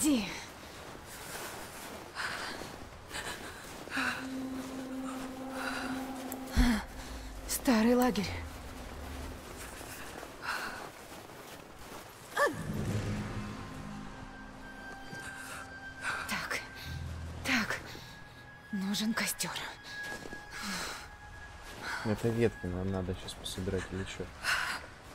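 Wind howls steadily outdoors.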